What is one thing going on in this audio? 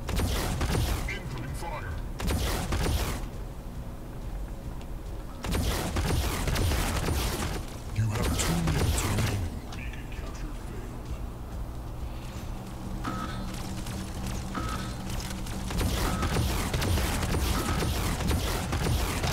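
A middle-aged man talks into a headset microphone.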